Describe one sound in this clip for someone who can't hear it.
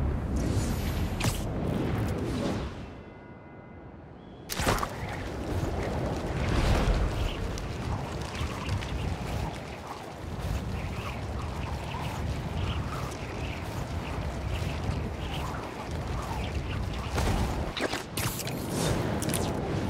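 Web lines zip and thwip as they shoot out.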